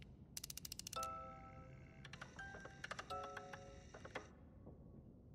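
A music box plays a few short, broken notes and stops.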